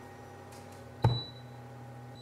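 A machine lid shuts with a thud.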